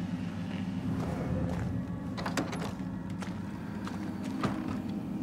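Footsteps crunch on the ground.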